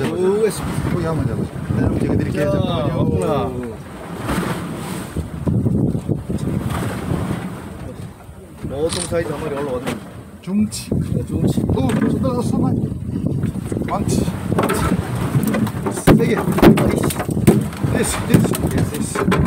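Waves wash against a boat's hull.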